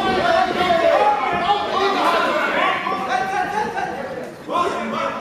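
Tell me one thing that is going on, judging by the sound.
A crowd of spectators shouts and calls out in a large echoing hall.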